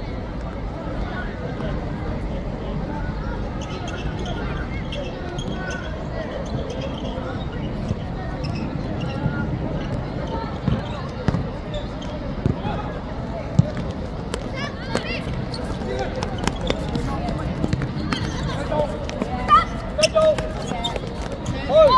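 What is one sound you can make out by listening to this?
A crowd of children and adults shouts and cheers across an open outdoor pitch.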